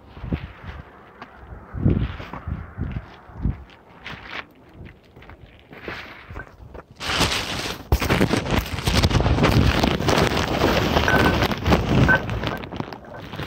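Footsteps scuff along pavement and gravel.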